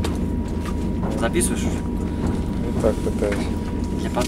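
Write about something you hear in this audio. A young man speaks briefly and quietly, close by.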